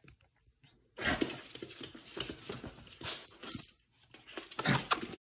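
A small dog growls and snarls playfully.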